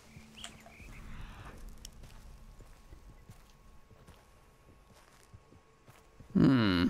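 A dog's paws patter softly through grass.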